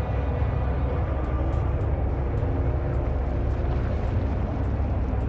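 A heavy machine rumbles steadily as it moves.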